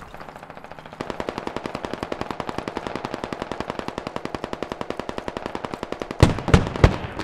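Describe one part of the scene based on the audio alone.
Footsteps crunch quickly across gravel.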